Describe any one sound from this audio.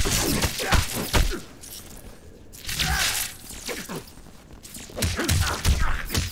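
Punches and kicks land with heavy thuds and crunches.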